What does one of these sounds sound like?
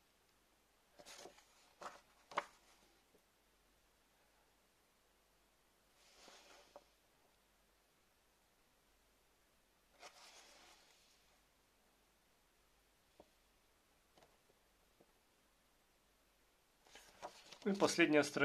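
Paper pages rustle and crinkle as a booklet is handled up close.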